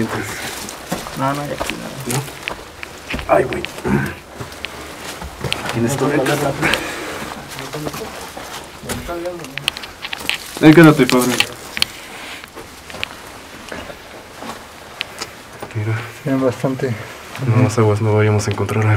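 A man talks calmly in an echoing tunnel.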